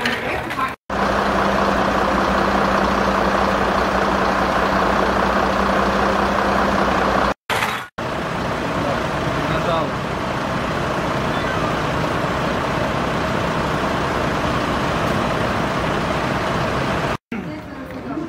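A fire engine's motor runs, driving its pump.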